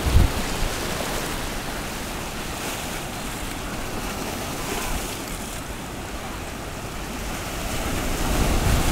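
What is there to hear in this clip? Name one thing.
Sea waves wash and foam over rocks.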